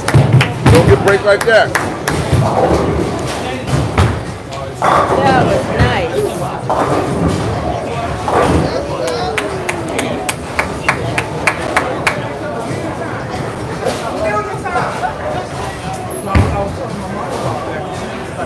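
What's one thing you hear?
A crowd of men and women talk and cheer in the background.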